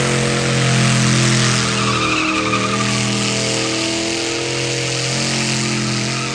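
Tyres screech and squeal as they spin on pavement.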